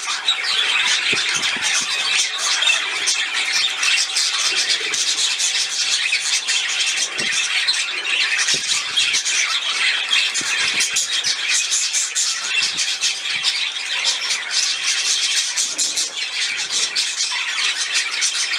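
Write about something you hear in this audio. A small bird splashes about as it bathes in the water.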